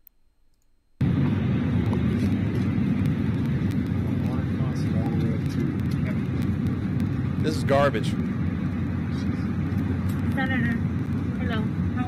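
A crowd of people talk over one another in a noisy plane cabin.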